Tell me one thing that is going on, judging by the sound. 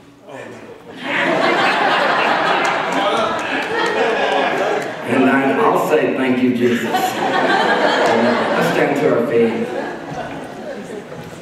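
A band plays music with guitars.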